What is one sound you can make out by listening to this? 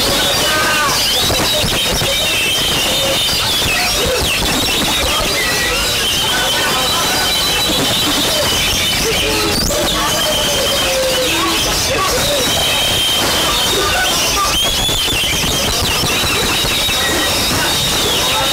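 A songbird sings a varied, whistling song amid many chirping birds.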